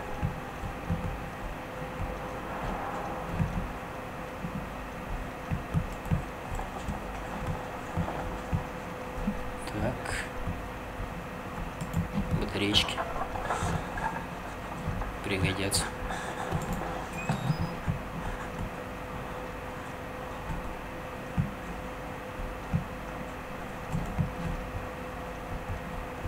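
Footsteps thud slowly and evenly across a hard floor.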